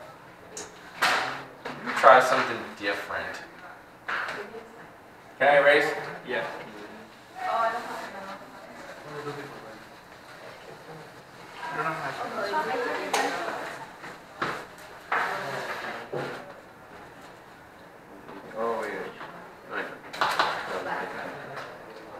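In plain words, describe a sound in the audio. A man speaks clearly and steadily, as if lecturing, close by.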